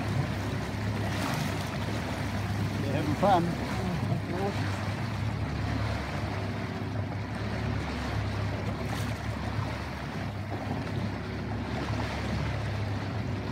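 Water rushes and splashes past the hull of a moving boat.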